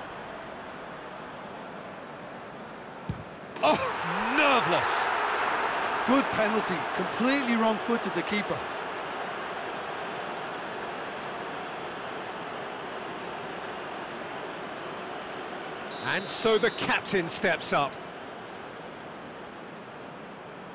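A large crowd murmurs and chants steadily.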